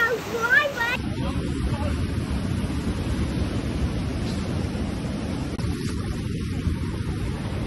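Waves crash and roar on a rocky shore.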